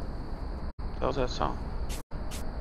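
A man speaks briefly close to a microphone.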